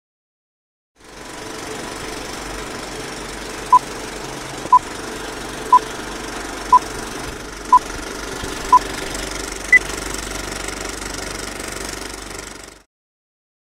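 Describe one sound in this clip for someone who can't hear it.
An old film reel crackles and hisses steadily.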